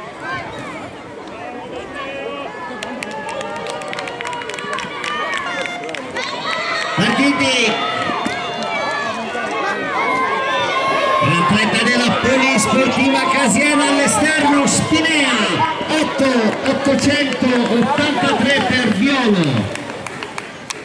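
A crowd cheers and shouts nearby, outdoors.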